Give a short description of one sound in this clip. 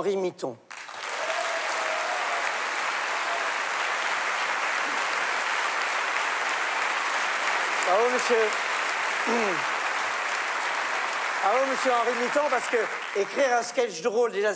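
A large audience applauds in an echoing theatre.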